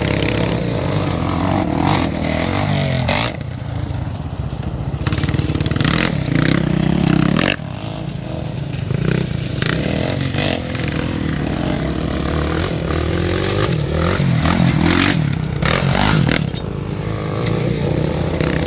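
Tyres crunch and spray loose gravel.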